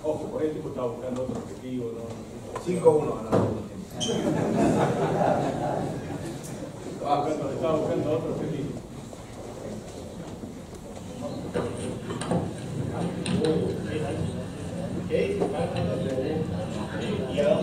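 A man speaks with animation to an audience in a room with some echo.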